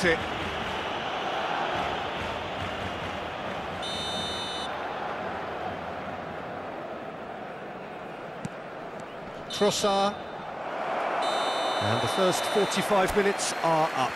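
A large crowd murmurs and chants steadily in a stadium.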